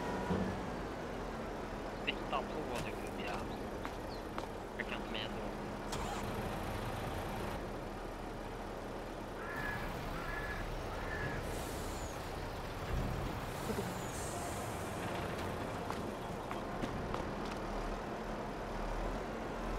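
Gravel pours from a loader bucket into a truck bed.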